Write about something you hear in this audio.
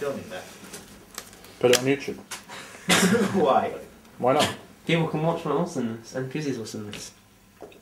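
Playing cards rustle as a hand shuffles them.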